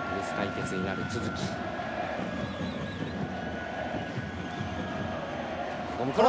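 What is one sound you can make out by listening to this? A large stadium crowd chants and cheers steadily in the open air.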